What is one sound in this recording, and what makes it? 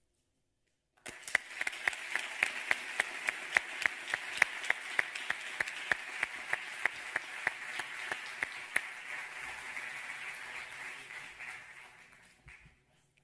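An audience applauds in a large hall, the clapping swelling and then slowly fading.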